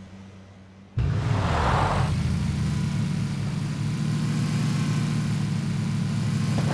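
A game vehicle's engine revs as it drives over grass.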